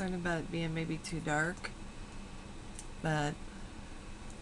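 An older woman speaks close to a microphone in short bursts.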